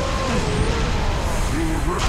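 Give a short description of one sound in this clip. An explosion booms in a video game.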